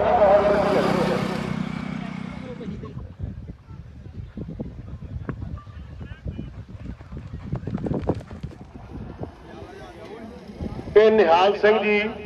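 A horse gallops past with thudding hoofbeats on dirt.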